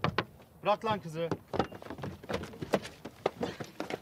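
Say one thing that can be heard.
A car door opens with a click.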